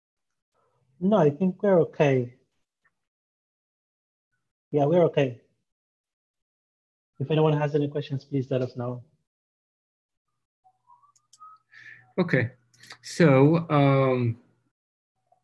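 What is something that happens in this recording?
A man talks calmly through an online call, in short phrases with pauses.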